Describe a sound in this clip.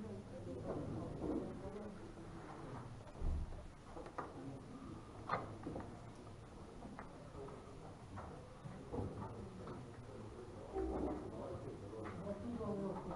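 Men and women murmur softly in the background.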